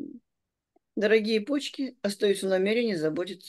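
An elderly woman speaks with animation through an online call.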